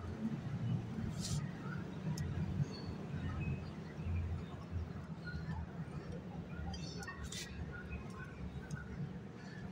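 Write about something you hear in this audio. A parrot pecks and crunches at seeds.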